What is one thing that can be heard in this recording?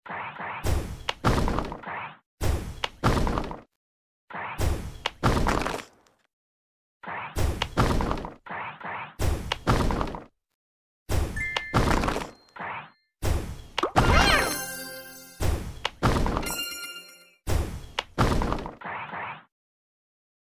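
Game bubbles pop in quick bursts of bright pops.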